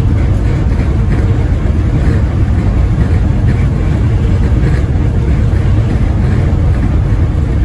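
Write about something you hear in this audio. A car drives steadily along a highway, its engine and tyres rumbling from inside.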